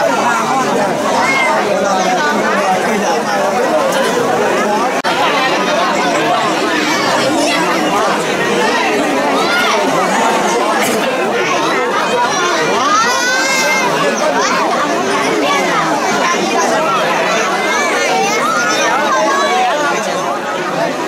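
Men in the crowd shout and cheer with excitement.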